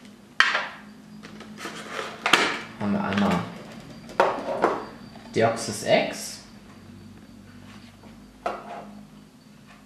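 Stiff plastic packaging crinkles and clicks as it is handled and pulled open.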